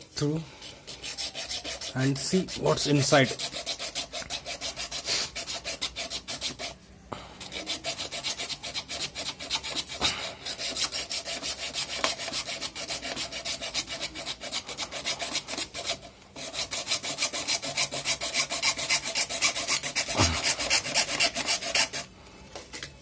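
A small hand saw rasps quickly back and forth through plastic pipe.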